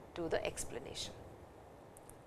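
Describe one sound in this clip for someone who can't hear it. A middle-aged woman speaks calmly into a close microphone.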